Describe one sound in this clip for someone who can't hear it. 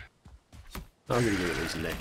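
A weapon strikes a creature with a sharp hit.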